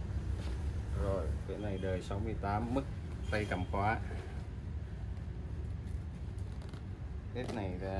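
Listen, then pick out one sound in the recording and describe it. Heavy cloth rustles as a jacket is handled and folded.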